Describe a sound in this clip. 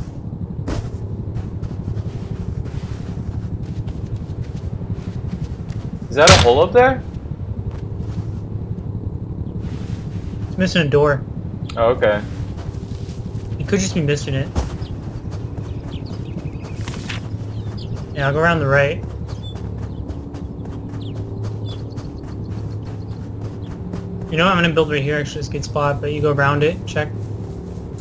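Footsteps crunch on sand.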